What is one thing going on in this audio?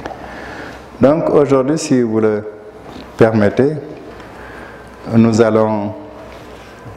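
An elderly man speaks calmly into a clip-on microphone, in short phrases with pauses.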